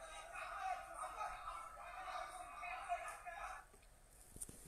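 Faint voices come from a laptop's speakers.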